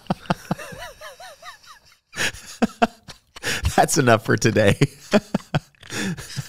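Two men laugh heartily into microphones.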